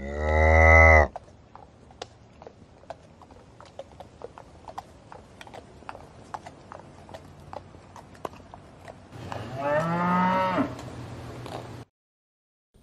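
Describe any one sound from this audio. Hooves clop on a dirt path.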